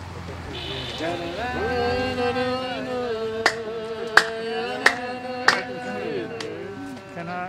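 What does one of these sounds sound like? Several men sing a slow chant together.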